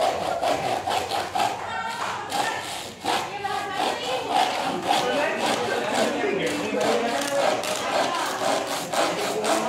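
A hand saw cuts through wood in quick, steady strokes.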